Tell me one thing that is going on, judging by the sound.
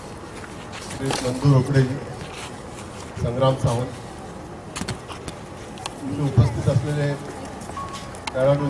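A man speaks loudly in short bursts through a microphone outdoors.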